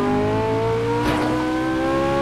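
Metal scrapes in a sudden crash.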